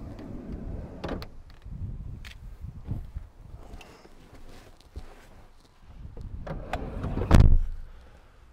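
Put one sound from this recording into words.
A man climbs into a car seat with rustling and thumps.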